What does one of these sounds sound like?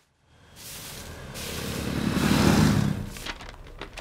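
A broom scrapes across a paved road.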